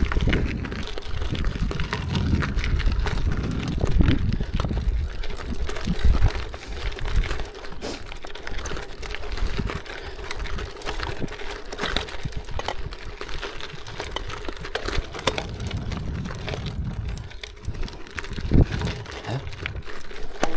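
Wind rumbles against the microphone in gusts.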